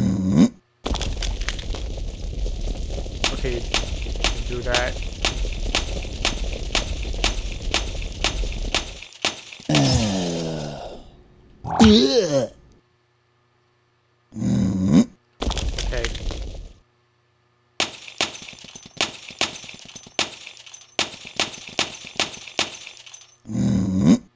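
Crystal blocks shatter with quick, bright clinks.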